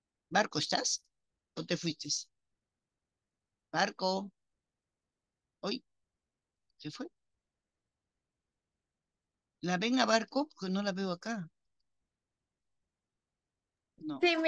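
A woman speaks calmly through an online call, in short bursts with pauses.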